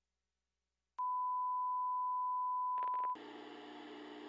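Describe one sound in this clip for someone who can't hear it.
A steady high test tone sounds.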